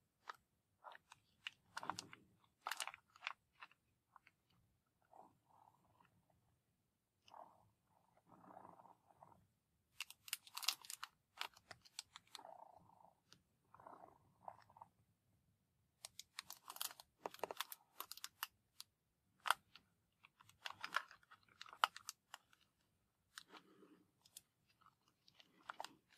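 A cardboard matchbox rubs and slides against a table.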